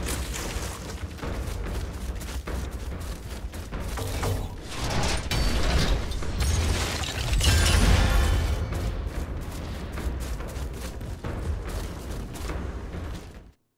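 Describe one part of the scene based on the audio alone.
Footsteps run quickly over dirt and leaves.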